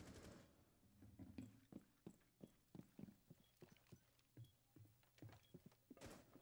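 Footsteps tread quickly across a hard floor.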